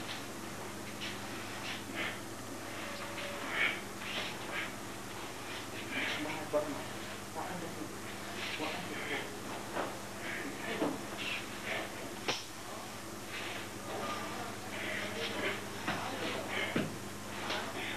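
Loose clothing swishes with quick movements.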